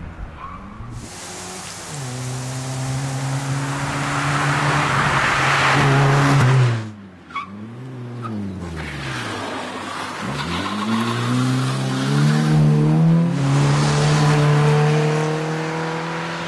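A small rally hatchback approaches at speed, its engine revving hard.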